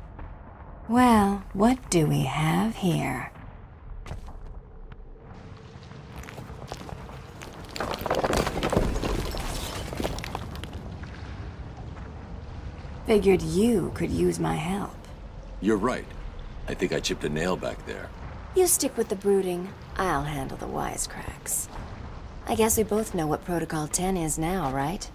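A young woman speaks in a teasing, playful voice.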